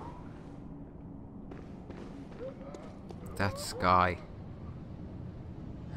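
Footsteps tread on stone at a steady walk.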